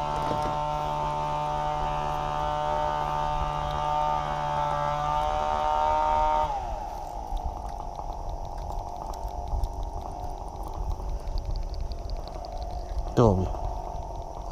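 Metal pliers click and scrape against a fishing hook.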